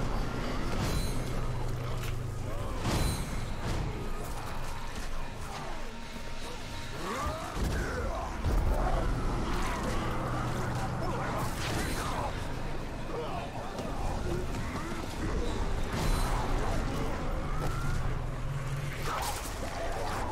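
Blows and impacts thud during combat.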